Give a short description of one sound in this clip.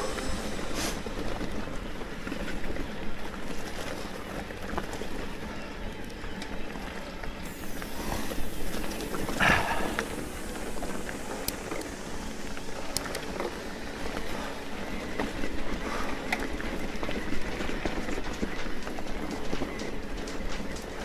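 Bicycle tyres crunch and rattle over a rough gravel track.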